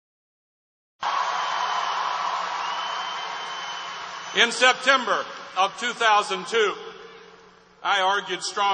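A crowd cheers loudly in a large echoing hall.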